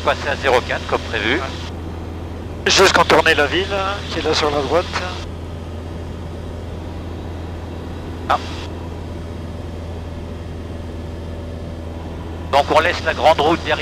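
A small plane's propeller engine drones steadily.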